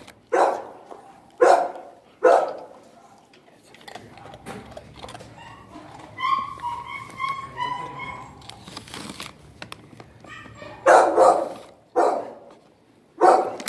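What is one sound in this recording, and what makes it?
A dog barks loudly and close by.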